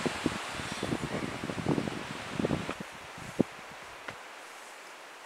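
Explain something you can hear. Tent fabric rustles and thumps as someone moves close by.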